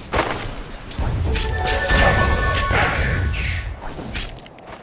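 Magic blasts boom and whoosh in a game battle.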